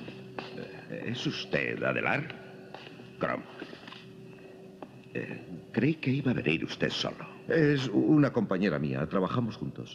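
An elderly man speaks firmly nearby.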